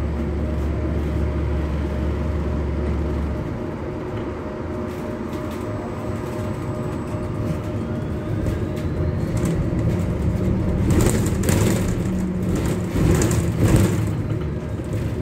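A city bus engine hums as it drives, heard from inside.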